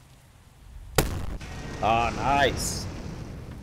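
An artillery gun fires with a loud, booming blast.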